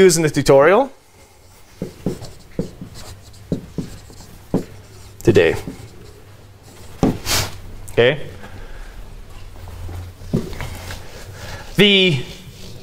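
A man speaks in short bursts, lecturing.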